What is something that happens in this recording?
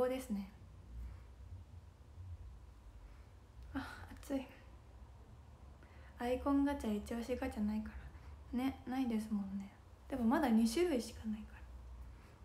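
A young woman speaks softly and casually, close to a microphone, in short bursts.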